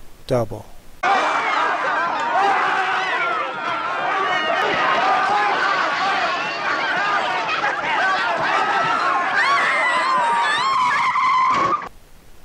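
A crowd of men and women screams and shouts in panic nearby.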